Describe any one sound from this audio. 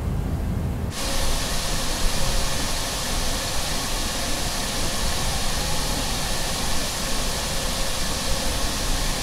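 Twinjet airliner engines roar and hiss from outside in flight.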